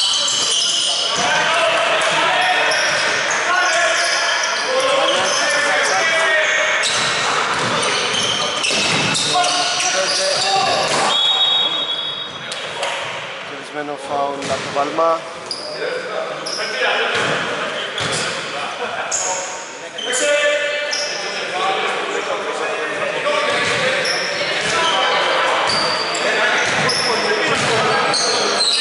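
Adult men shout to each other across an echoing gym.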